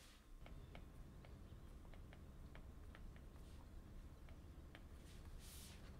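A stylus taps and clicks lightly on a tablet.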